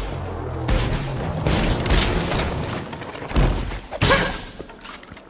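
Rapid gunfire blasts out in loud bursts.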